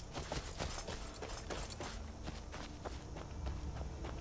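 Footsteps crunch softly on the forest ground.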